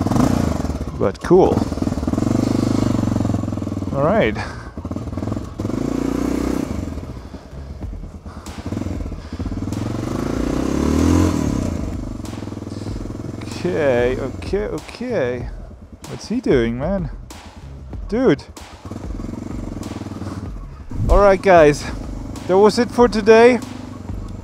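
A motorcycle engine hums and revs steadily up close.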